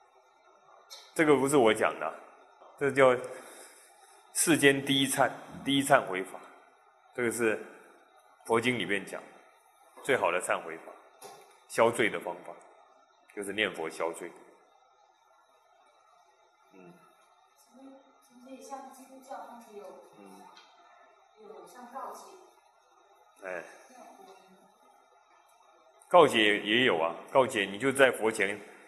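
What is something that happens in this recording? A middle-aged man speaks calmly into a microphone, lecturing in phrases with pauses.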